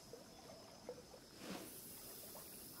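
A fishing rod swishes through the air as a line is cast.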